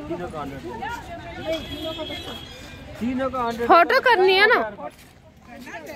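Children talk and shout excitedly close by.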